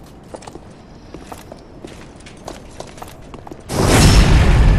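Footsteps clatter on stone.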